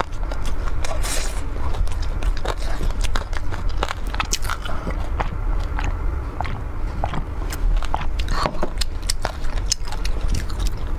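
A young woman chews crunchy fried food close to a microphone.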